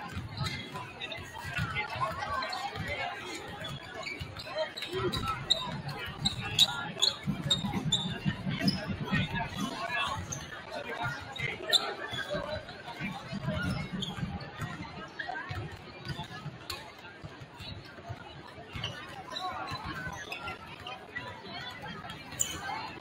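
Sneakers squeak on the wooden floor.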